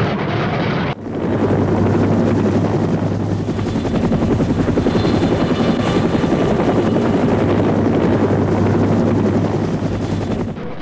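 A helicopter's rotor chops with a fast, steady beat.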